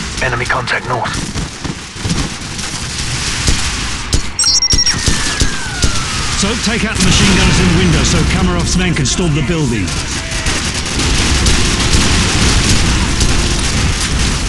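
Sniper rifle shots crack loudly.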